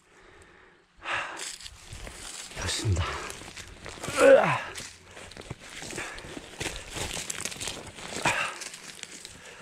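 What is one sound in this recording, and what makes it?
A digging tool scrapes and crunches through dry soil.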